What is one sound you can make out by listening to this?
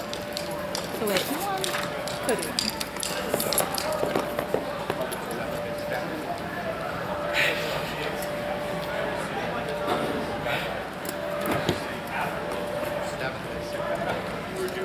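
Men talk and call out at a distance in a large echoing hall.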